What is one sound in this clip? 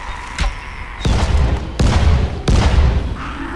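Loud explosions boom and rumble.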